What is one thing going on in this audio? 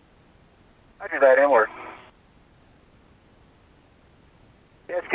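A man speaks briefly over a crackly radio link.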